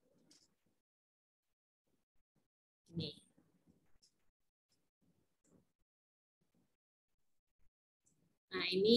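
A woman speaks quietly over an online call.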